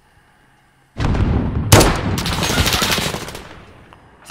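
A sniper rifle fires a loud, booming shot that echoes away.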